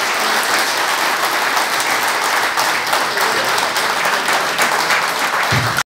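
A crowd claps and applauds steadily in a large echoing hall.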